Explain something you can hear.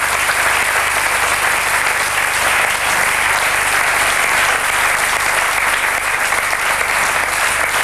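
A large audience applauds steadily in an echoing hall.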